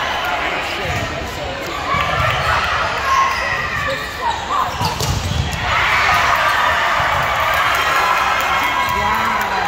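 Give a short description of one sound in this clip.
A steady din of voices echoes through a large hall.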